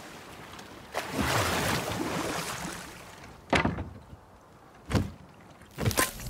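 Oars dip and splash in the water.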